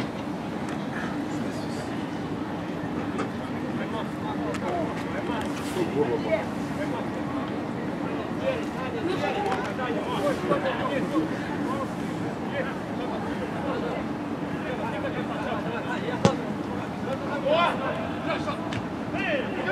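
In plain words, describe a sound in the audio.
Men shout and call to each other across a large open field outdoors.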